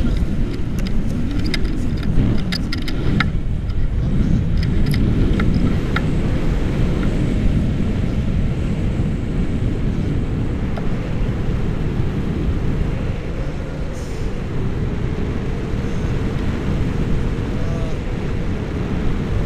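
Strong wind rushes and buffets loudly throughout, outdoors high in the air.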